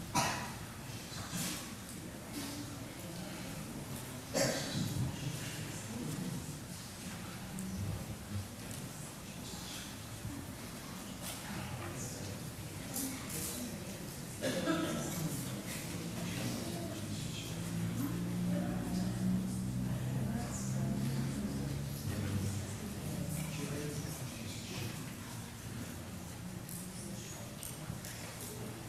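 Men and women chat at once in a large echoing hall.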